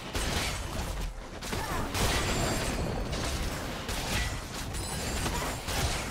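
Game spell effects crackle and whoosh in quick bursts.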